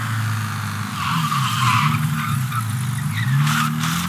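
Tyres skid and screech on the road.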